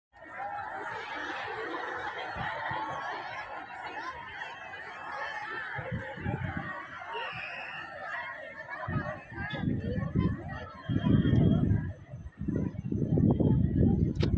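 A large crowd of women chatters outdoors at a distance.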